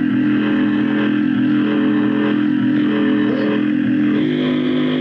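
A band plays loud amplified music live on stage.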